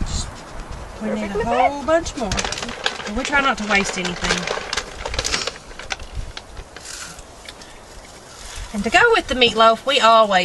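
A woman talks nearby in a lively, chatty way.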